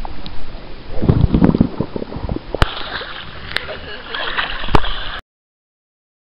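Water splashes in a pool.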